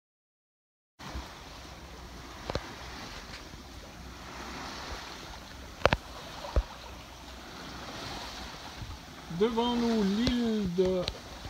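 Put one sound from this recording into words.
Water rushes along the hull of a moving sailing boat.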